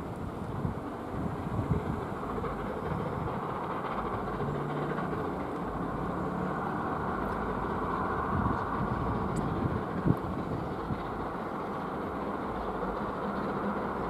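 Wind blows steadily outdoors, rustling leaves.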